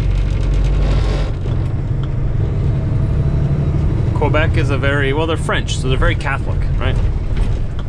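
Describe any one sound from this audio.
A truck engine rumbles steadily as it drives down the road.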